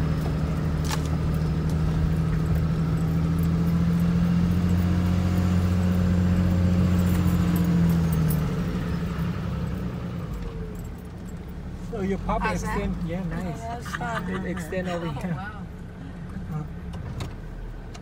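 Tyres roll and crunch over a dirt road.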